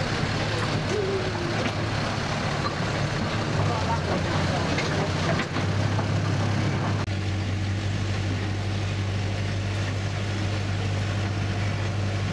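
A small locomotive engine hums and chugs steadily.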